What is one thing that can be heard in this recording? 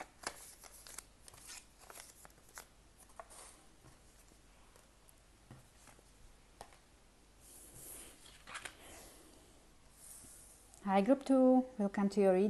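Cards tap and slide softly on a wooden table.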